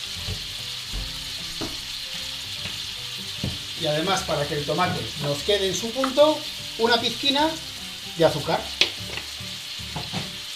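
Vegetables sizzle softly in a frying pan.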